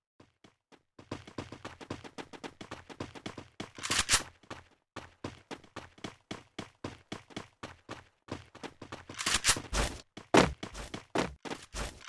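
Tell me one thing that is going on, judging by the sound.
Quick footsteps of a running game character tap in a rhythm.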